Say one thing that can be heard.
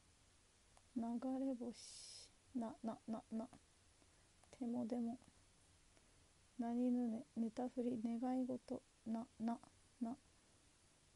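A young woman speaks softly and close by, in short bursts.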